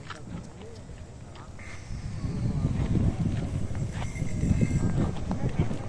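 A bull's hooves clop on a paved road.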